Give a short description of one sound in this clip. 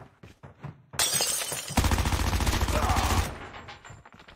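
Gunfire rattles in a rapid, loud burst.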